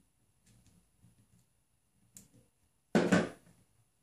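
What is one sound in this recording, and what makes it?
Metal pliers are set down on a hard table with a clack.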